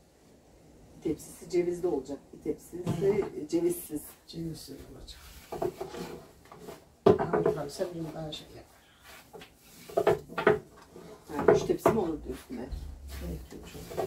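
An elderly woman talks calmly nearby.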